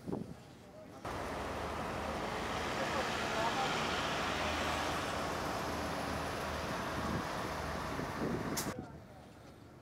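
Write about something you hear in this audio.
A vehicle engine hums as it drives past on a street.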